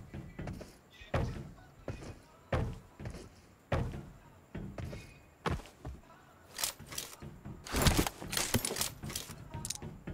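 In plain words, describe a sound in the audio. Footsteps thud on a hollow metal roof.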